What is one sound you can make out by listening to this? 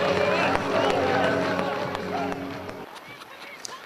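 A crowd of fans sings and chants loudly outdoors.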